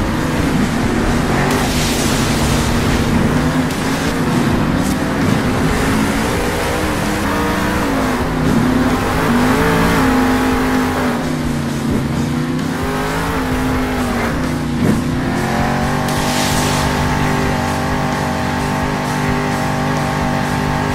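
A monster truck engine roars and revs up and down.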